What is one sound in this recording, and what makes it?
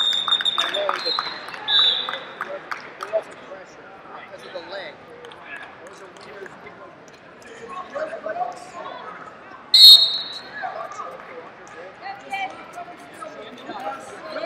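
Spectators chatter in a large echoing hall.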